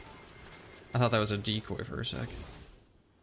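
Rapid gunfire bursts nearby.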